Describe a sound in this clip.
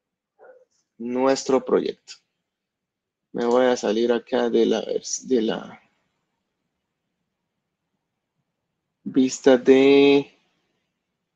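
A man speaks calmly in short phrases through a headset microphone, as on an online call.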